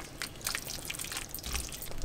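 Tongs clink against a pan as pasta is tossed.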